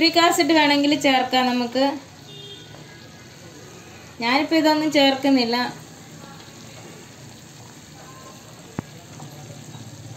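A wooden spoon stirs and scrapes through a thick liquid in a pan.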